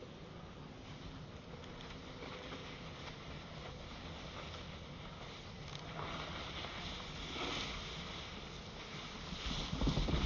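A snowboard scrapes over packed snow.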